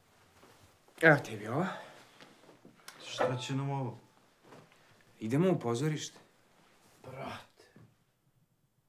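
A young man speaks in short, animated bursts nearby.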